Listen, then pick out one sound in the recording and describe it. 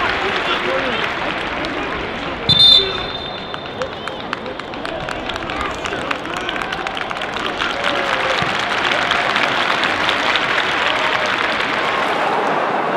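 A large crowd murmurs and chatters in an open stadium.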